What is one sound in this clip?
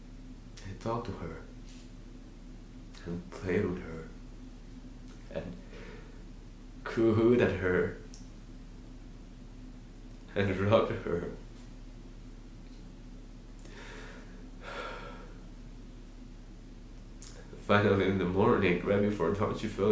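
A young man speaks emotionally and haltingly, close to a microphone, with long pauses.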